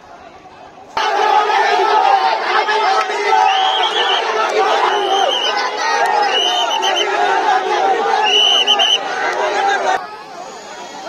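A crowd of young men shouts and chants loudly outdoors.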